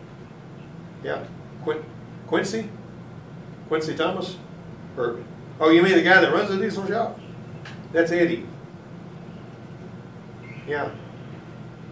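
A middle-aged man talks on a phone in short bursts, close by.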